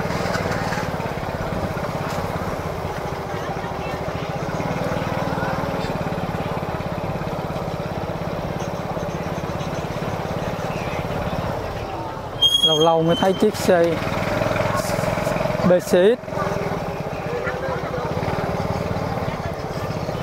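A crowd of people chatters steadily in a busy outdoor market.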